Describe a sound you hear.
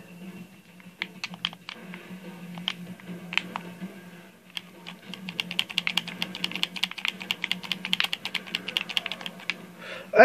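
Rapid gunfire from a video game plays through a television speaker.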